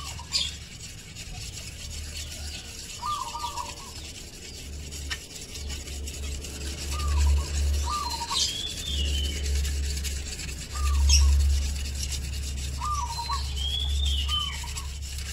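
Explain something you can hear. A whetstone scrapes along a curved blade in repeated strokes.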